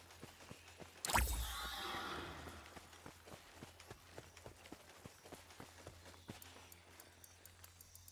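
Footsteps run steadily over sandy ground.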